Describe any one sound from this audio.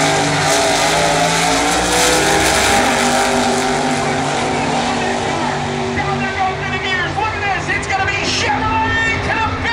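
Race car engines roar loudly as the cars launch and speed away, fading into the distance.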